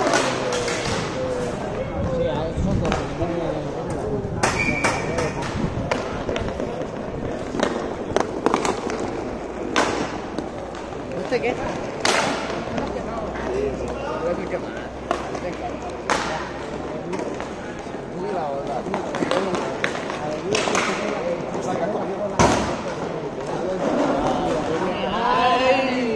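Inline skate wheels roll and scrape on a hard court.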